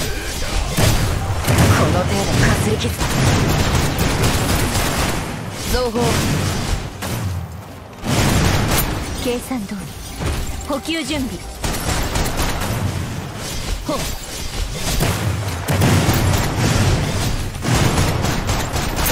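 Sword slashes and magic blasts hit with sharp, loud impacts.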